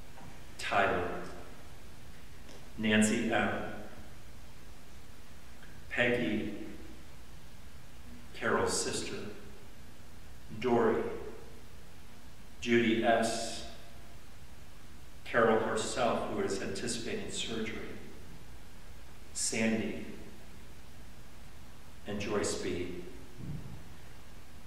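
An elderly man speaks slowly and calmly into a microphone, with pauses between phrases, in an echoing room.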